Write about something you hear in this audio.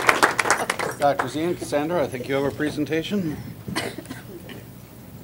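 Several adults talk quietly after the applause.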